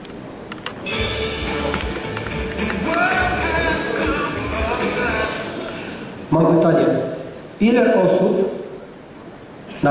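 Music plays loudly through loudspeakers in a large hall.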